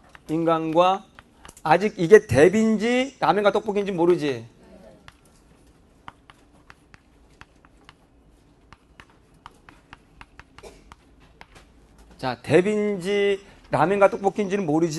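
A young man lectures with animation through a microphone.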